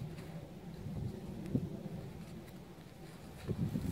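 A small trowel digs into dry soil.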